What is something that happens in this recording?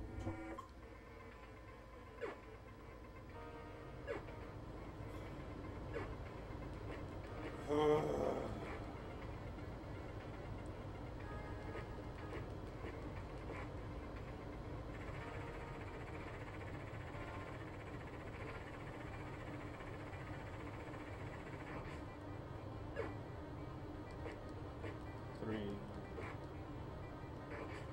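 Chiptune video game music plays steadily.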